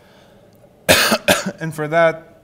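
A man coughs sharply.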